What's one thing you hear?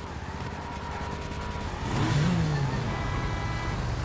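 A motorcycle engine rumbles.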